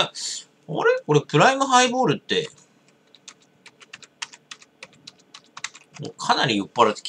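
Fingers tap quickly on a computer keyboard.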